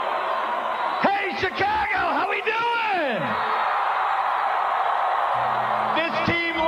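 A man speaks loudly through a loudspeaker to a crowd.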